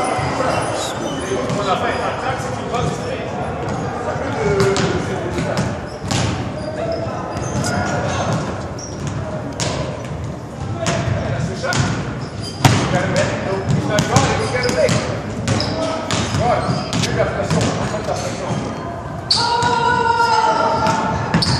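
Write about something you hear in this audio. Basketballs bounce on a hardwood floor in a large echoing hall.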